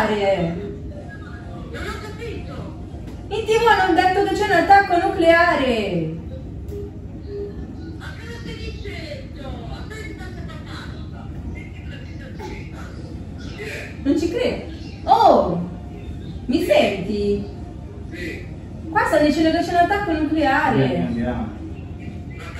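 A woman talks with animation nearby.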